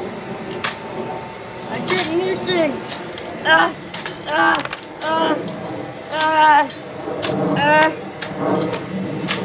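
A pole strikes a trampoline with sharp knocks.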